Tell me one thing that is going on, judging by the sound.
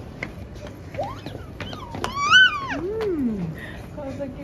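A toddler squeals and laughs happily close by.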